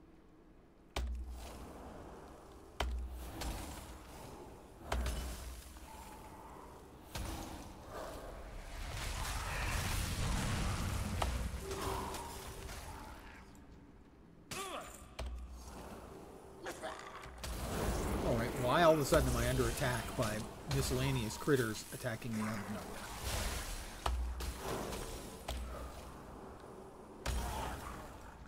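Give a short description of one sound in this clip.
Game spells blast and thump in bursts.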